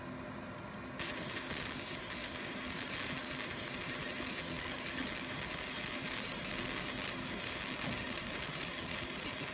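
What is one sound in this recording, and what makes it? A laser marker hisses steadily as it engraves a metal plate.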